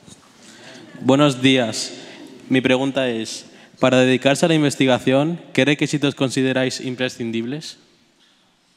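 A young man speaks into a microphone, heard over loudspeakers in a large hall.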